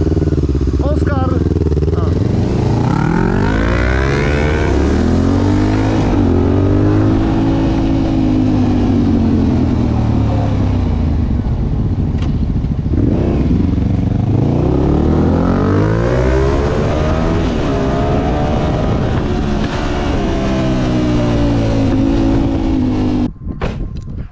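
A quad bike engine revs loudly up and down close by.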